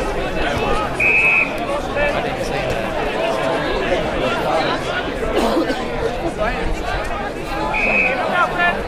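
An umpire blows a short, shrill whistle.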